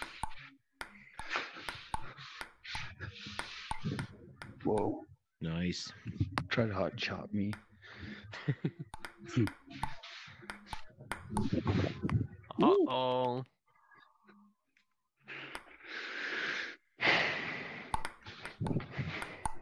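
A ping-pong ball clicks sharply on a table and paddles.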